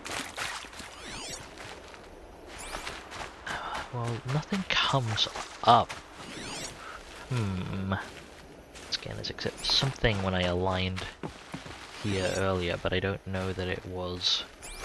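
A high electronic pulse sweeps outward.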